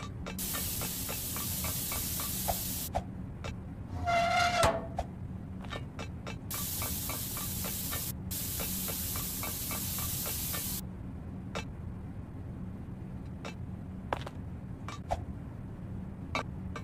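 Footsteps clank quickly across a metal grate.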